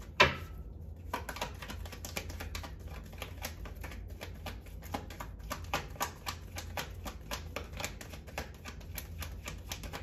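Playing cards riffle and flick rapidly as a deck is shuffled by hand.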